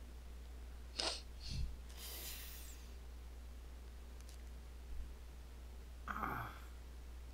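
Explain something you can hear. A young woman speaks briefly and softly into a close microphone.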